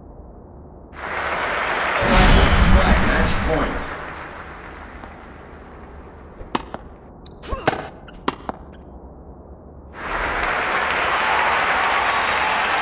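A crowd cheers and applauds.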